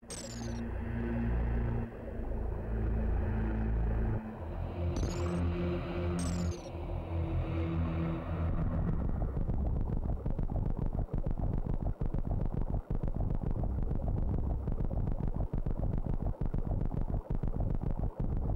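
Retro video game music plays with low buzzing notes.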